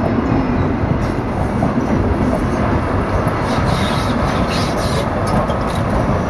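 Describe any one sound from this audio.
A train rumbles past close by on the tracks.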